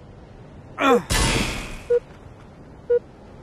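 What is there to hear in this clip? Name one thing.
An energy burst roars and crackles.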